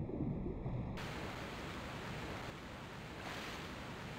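Water splashes as a swimmer strokes through it.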